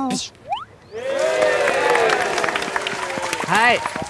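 A group of young men cheer and shout.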